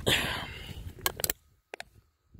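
A thin metal can crinkles and clicks in a hand.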